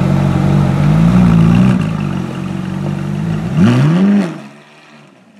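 A sports car engine revs sharply up and down.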